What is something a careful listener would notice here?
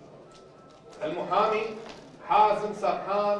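A man speaks clearly into a microphone, reading out.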